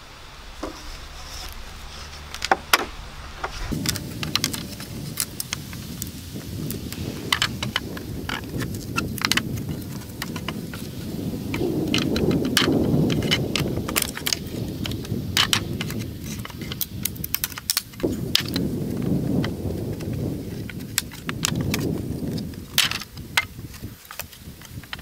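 Wooden boards knock and clatter as they are pried apart.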